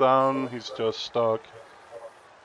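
A man speaks briefly and with animation close to a microphone.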